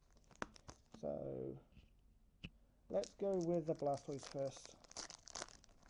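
Card packaging rustles and crinkles in hands.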